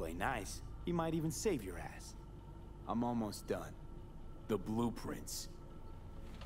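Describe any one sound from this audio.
Men speak in calm, low voices close by.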